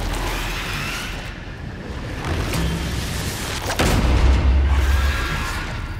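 A creature hisses and screeches nearby.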